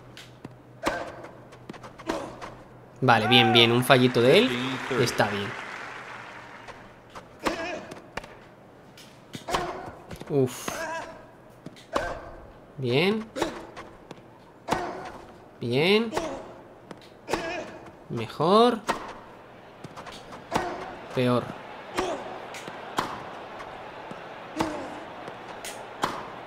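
A tennis ball is struck by a racket again and again with sharp pops.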